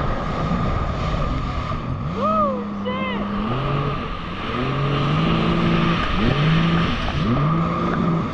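A jet ski engine drones and revs up and down.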